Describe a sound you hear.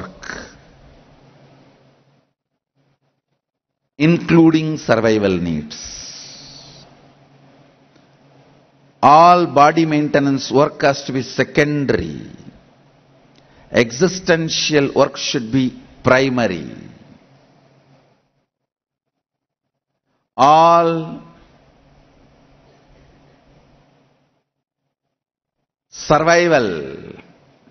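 A man speaks calmly and expressively into a microphone, in short phrases with pauses, in a reverberant space.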